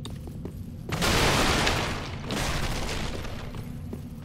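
A heavy weapon swishes through the air and strikes.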